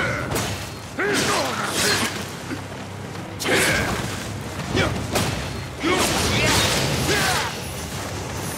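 Swords clash and slash in a fight.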